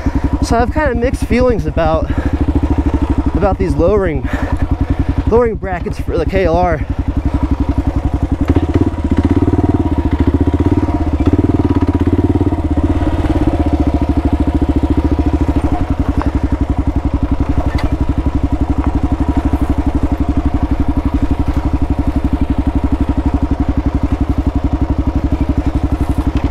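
A motorcycle engine putters steadily at low revs, close by.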